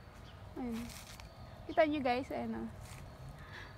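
A small animal gives short, high, wavering cries nearby.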